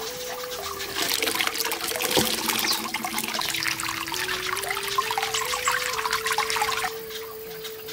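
Water splashes and trickles as hands rinse small tomatoes.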